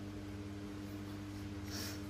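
A finger taps lightly on a touchscreen.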